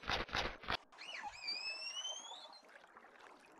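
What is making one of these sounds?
A dolphin squeals with high whistling cries.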